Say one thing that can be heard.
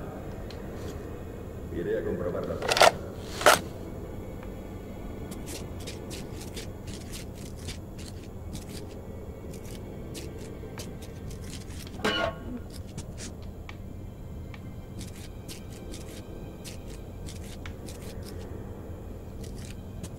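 Footsteps crunch softly on a gritty floor.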